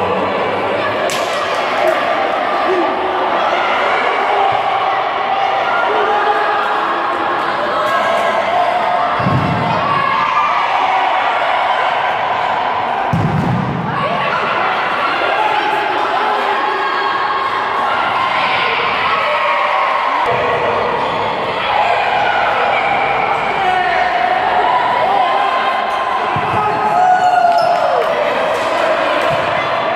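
A crowd of spectators shouts and chatters in a large echoing hall.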